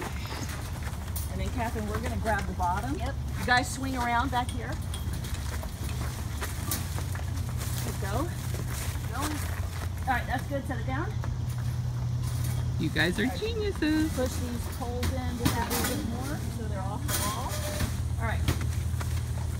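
Young women talk and call out to each other outdoors.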